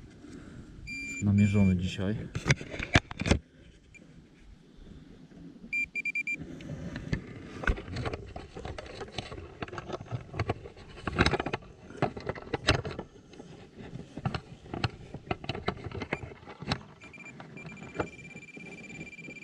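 A metal detector beeps with a short high tone.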